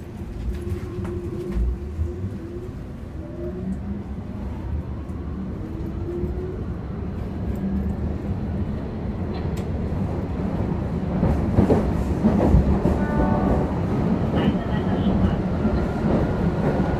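A man rustles through a bag.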